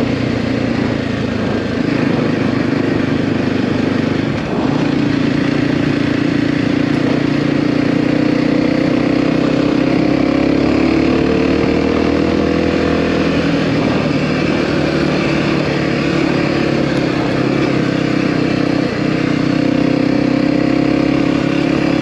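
A motorcycle engine drones steadily, rising and falling in pitch as it speeds up and slows.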